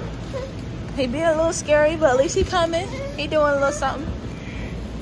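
A young child babbles and squeals close by.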